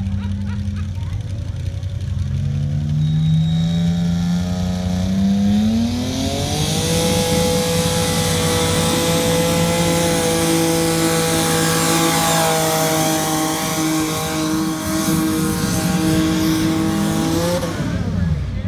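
A tractor engine roars loudly and climbs in pitch as it pulls down the track.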